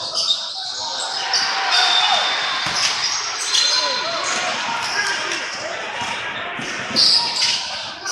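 A crowd chatters and calls out in the background.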